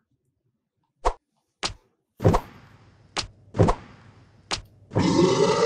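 Short zapping game sound effects burst out several times.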